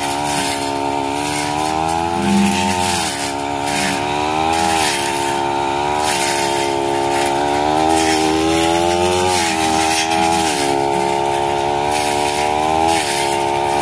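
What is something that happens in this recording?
A brush cutter's spinning line swishes through tall grass.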